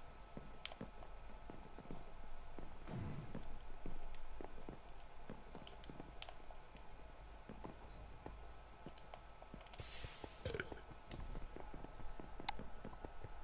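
Footsteps tap quickly across hard floors in a video game.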